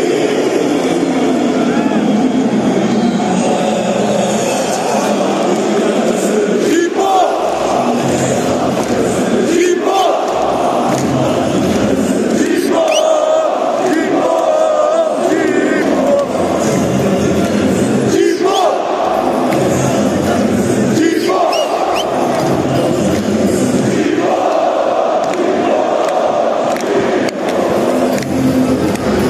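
A huge stadium crowd chants loudly in rhythm, echoing under the roof.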